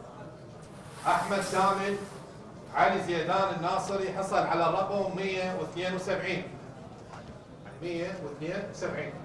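A man speaks calmly into a microphone, announcing.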